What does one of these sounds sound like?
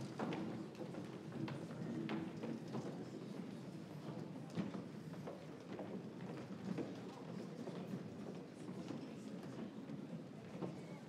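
A large choir of young voices sings together in an echoing hall.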